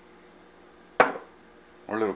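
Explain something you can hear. A glass jar knocks down onto a hard counter.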